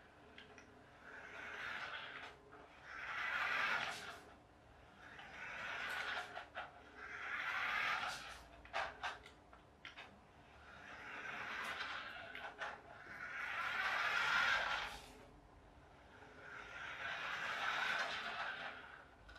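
A small electric motor whirs as a toy car drives in bursts across a hard floor.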